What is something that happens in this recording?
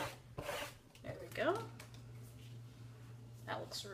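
A plastic stencil peels off paper with a light crinkle.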